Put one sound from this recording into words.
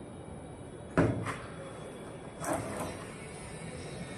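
A tile knocks and scrapes against a wall as it is pressed into place.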